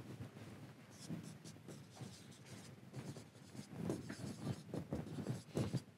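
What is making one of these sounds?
A marker squeaks and taps on a whiteboard.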